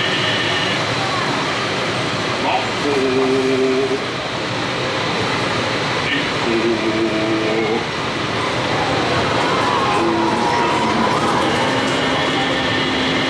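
Water churns and splashes steadily in a boat's wake.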